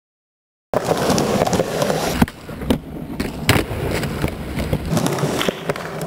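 A skateboard clacks as a skater pops it and lands.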